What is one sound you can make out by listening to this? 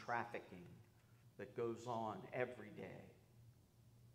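A man speaks calmly into a microphone in a large echoing room.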